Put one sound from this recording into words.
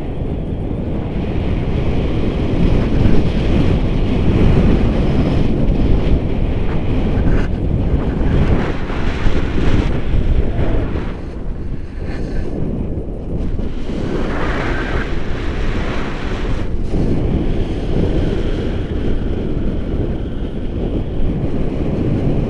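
Strong wind roars and buffets against a microphone outdoors.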